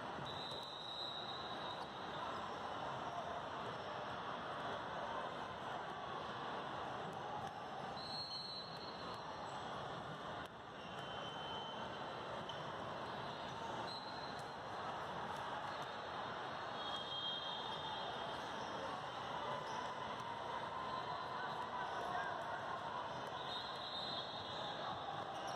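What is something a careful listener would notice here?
Sneakers squeak sharply on a hard court now and then.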